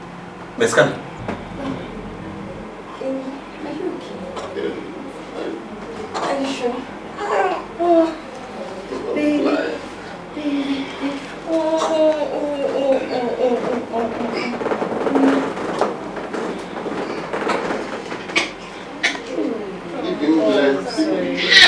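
A man talks softly nearby.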